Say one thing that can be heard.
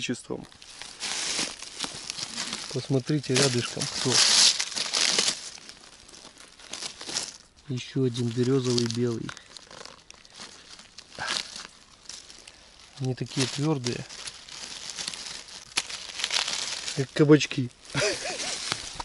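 Dry leaves rustle and crunch as a hand digs through them.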